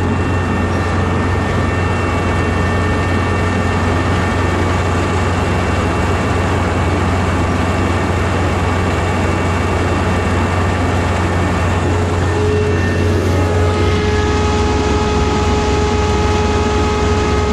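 A combine harvester engine drones loudly and steadily.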